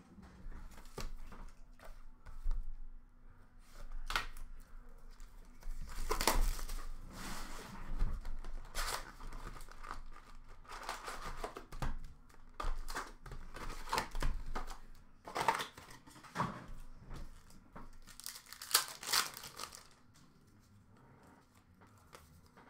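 Cardboard boxes rustle and knock as hands handle them.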